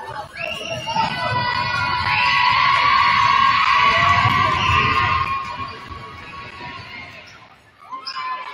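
A crowd cheers loudly in a large echoing gym.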